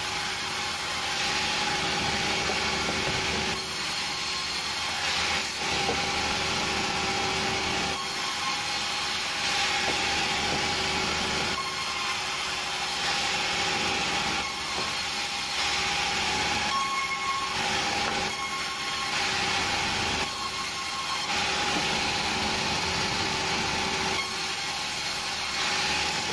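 A band saw runs steadily and whines as it cuts through logs.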